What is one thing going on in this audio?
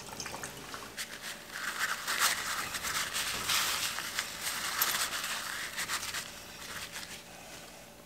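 Paper towel rubs and rustles against metal.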